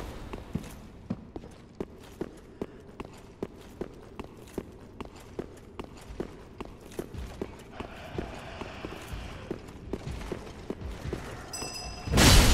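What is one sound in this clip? Armored footsteps clank quickly on stone.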